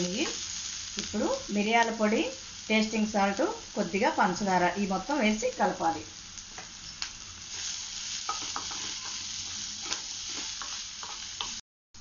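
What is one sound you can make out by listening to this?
Onions sizzle in a hot pan.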